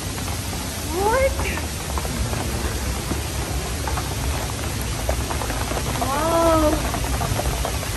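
A young woman cries out with delight close by.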